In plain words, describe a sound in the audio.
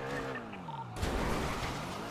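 A car crashes with a loud bang.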